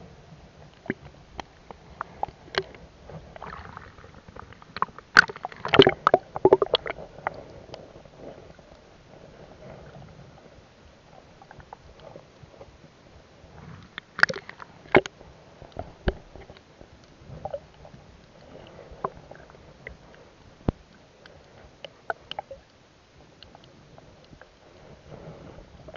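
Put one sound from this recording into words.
Muffled underwater clicks and knocks sound as a swimmer moves through the water.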